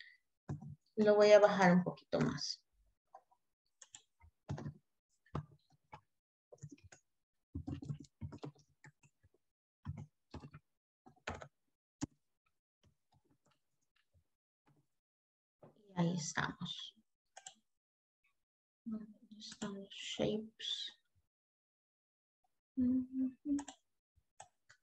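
A woman speaks calmly over an online call, pausing between words.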